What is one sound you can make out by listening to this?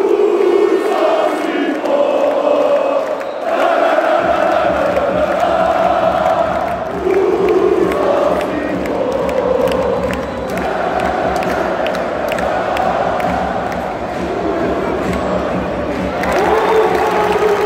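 A large crowd chants and sings loudly in an echoing arena.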